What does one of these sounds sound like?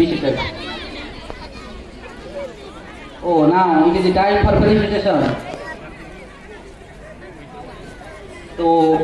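A man speaks loudly into a microphone over loudspeakers outdoors, announcing.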